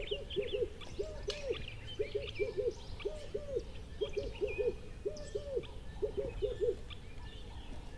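Seagulls cry overhead near the sea.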